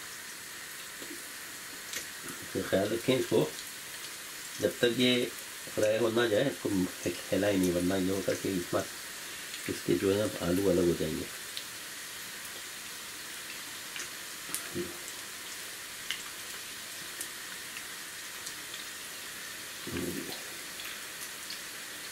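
A spoon drops batter into hot oil with a splash.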